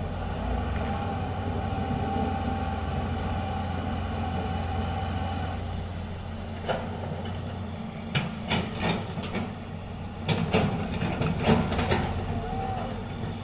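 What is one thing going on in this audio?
A truck engine rumbles steadily as a truck drives through a shallow river.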